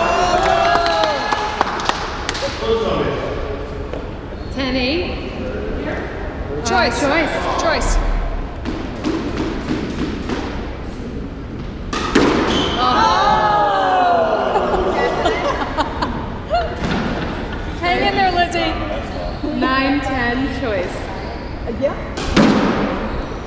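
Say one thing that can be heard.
Squash rackets strike a squash ball in an enclosed echoing court.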